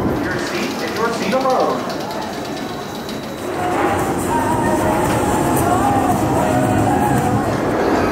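Riders scream on a roller coaster.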